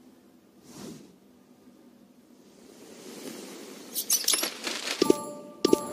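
A fabric curtain swishes aside.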